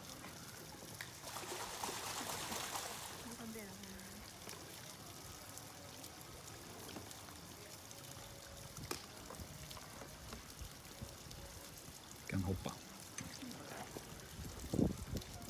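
Water splashes softly as a bear paddles through it.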